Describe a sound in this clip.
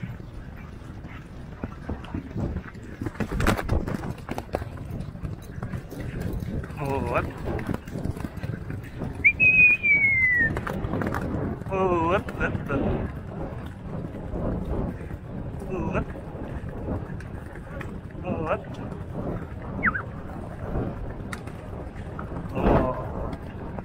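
A horse's hooves pound rapidly on turf at a gallop.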